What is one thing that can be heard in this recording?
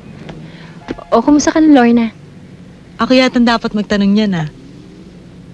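A young woman talks calmly, close by.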